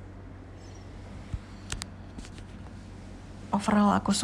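A nail file rasps against fingernails.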